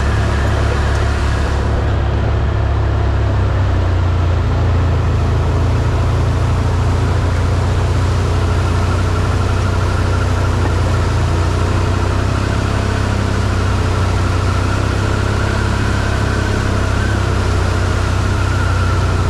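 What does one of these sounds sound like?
A nearby off-road vehicle engine drones steadily and loudly.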